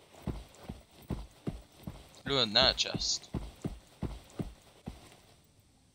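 Armoured footsteps crunch steadily on sand.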